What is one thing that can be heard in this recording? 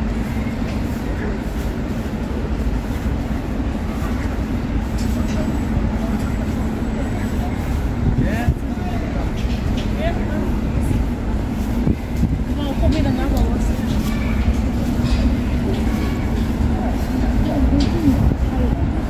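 City traffic rumbles steadily in the distance.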